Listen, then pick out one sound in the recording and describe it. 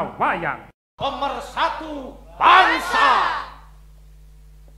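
A group of men shout and cheer together.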